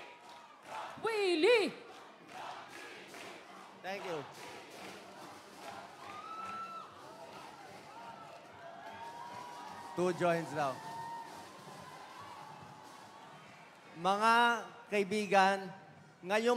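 A man shouts excitedly through a loudspeaker.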